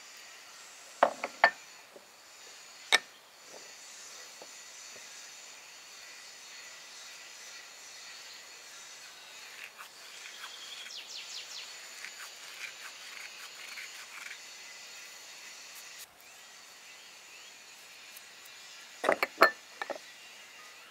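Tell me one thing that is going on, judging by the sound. A wooden spoon clinks against a glass bowl.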